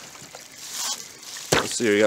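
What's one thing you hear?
Water splashes as it pours out of a jug.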